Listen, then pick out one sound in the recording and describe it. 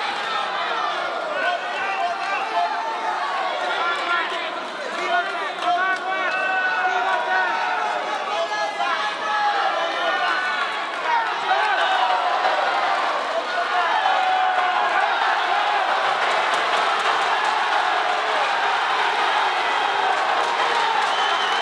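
A crowd of men and women shouts and cheers in a large hall.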